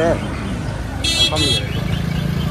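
A car horn honks briefly.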